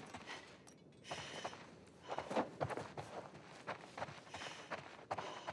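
Soft footsteps pad slowly across a floor.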